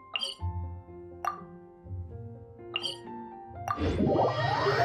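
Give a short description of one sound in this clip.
Soft chiming tones ring out as menu buttons are pressed.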